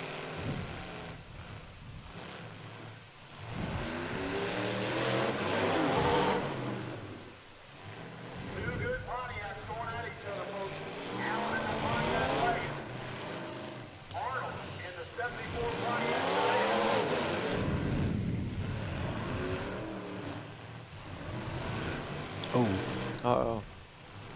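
Car engines roar and rev hard, rising and falling in pitch.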